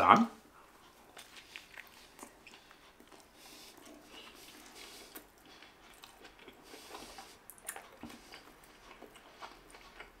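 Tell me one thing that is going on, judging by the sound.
A man chews food with quiet crunching.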